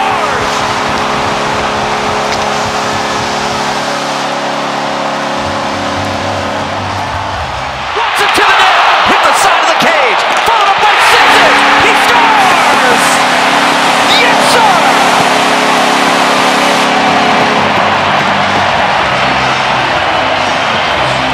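A large crowd cheers and roars loudly in a big arena.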